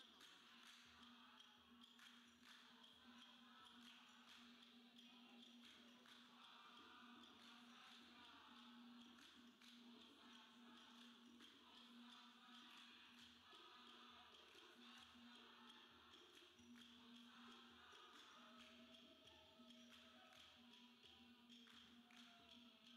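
Many hands clap in rhythm.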